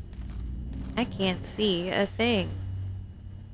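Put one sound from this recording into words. A young woman speaks with animation into a microphone.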